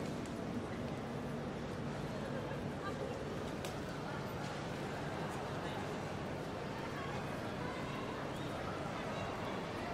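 Footsteps echo in a large echoing hall.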